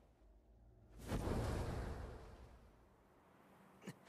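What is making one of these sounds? Wind rushes loudly past, then fades.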